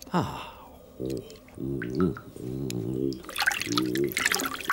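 A man hums and mumbles nervously, close by.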